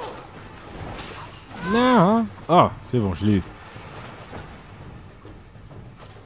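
A blade swishes through the air.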